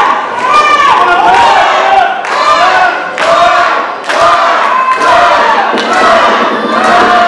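A crowd chants loudly and rhythmically in an echoing hall.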